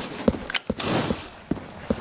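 A lighter flicks and a flame catches.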